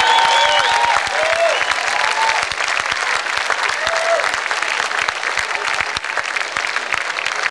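A large crowd claps and cheers loudly outdoors.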